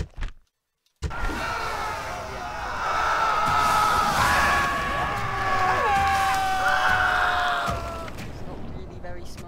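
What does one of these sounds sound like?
Swords and shields clash loudly in a crowded battle.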